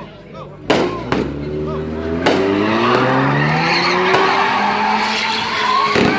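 A car engine revs loudly and roars.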